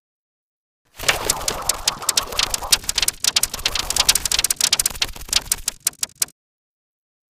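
Number cards flip rapidly with a fast clattering.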